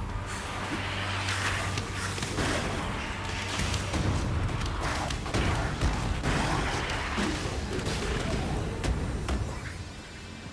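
Heavy impacts thud and crash during a fight.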